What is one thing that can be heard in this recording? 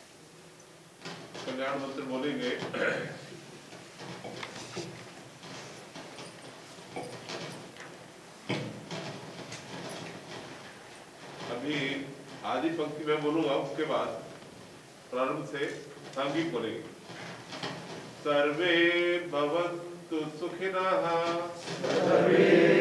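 An elderly man speaks through a microphone, heard over loudspeakers in an echoing hall.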